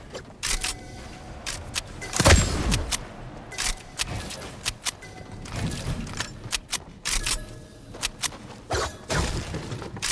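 Building pieces snap into place with quick, sharp clacks.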